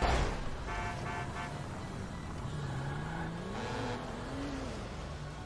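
A large truck engine rumbles nearby.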